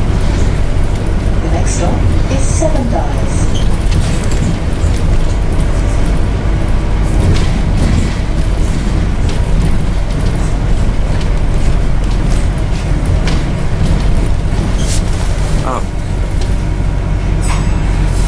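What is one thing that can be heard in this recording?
A bus engine rumbles steadily from inside.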